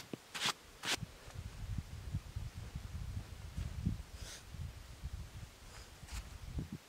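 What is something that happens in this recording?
Boots crunch and thump through deep snow.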